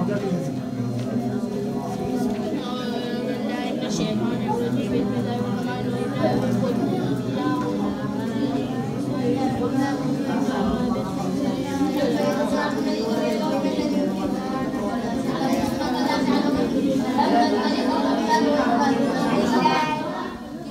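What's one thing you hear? A group of boys recite aloud together in a murmuring chorus.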